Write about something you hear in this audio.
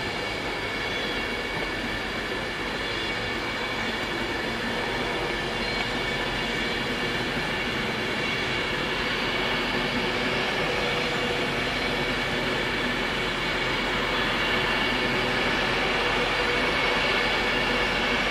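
A high-speed electric train passes at speed, its wheels roaring and humming on the rails.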